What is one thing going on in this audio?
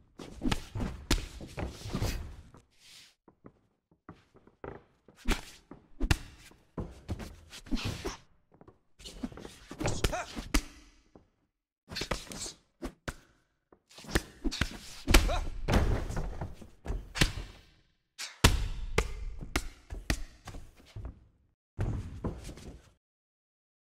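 Punches and kicks thud against bodies in quick bursts.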